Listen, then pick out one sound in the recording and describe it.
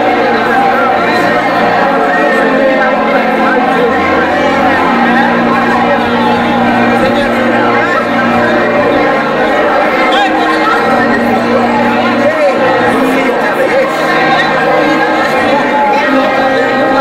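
A crowd of men and women chatter and laugh close by.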